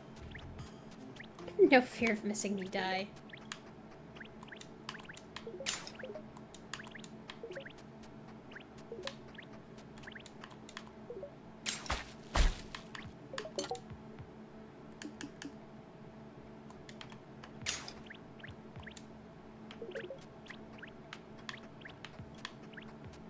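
Short bright game chimes and blips sound as items are picked up.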